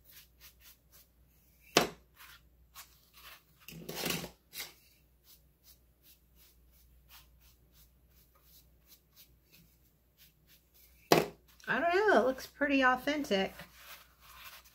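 Hands rub and knock against a hollow object.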